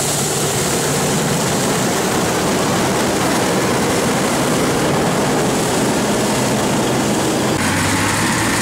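A combine harvester's engine roars close by.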